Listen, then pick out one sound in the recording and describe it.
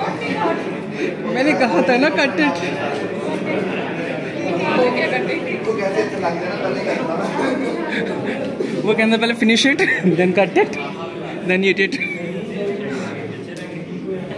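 A group of people sing together in a room.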